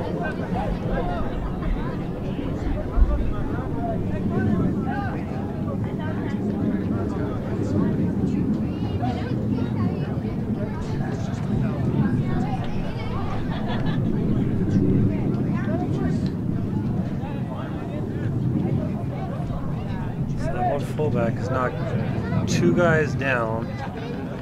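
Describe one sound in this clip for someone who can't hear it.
Young men talk and call out outdoors.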